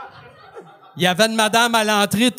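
An elderly man speaks loudly and with animation into a microphone.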